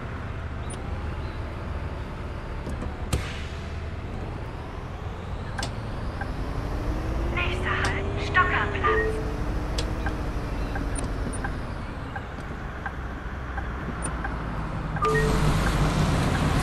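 A bus engine hums steadily and rises and falls in pitch as the bus drives.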